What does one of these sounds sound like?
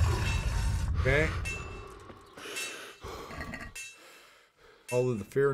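A man speaks casually into a microphone.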